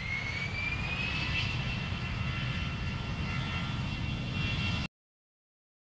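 Jet engines roar steadily from inside an airplane cabin.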